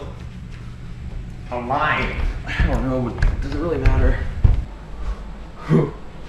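Footsteps thud up stairs.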